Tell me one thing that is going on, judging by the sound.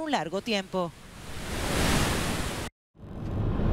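Water rushes loudly through a dam's spillway.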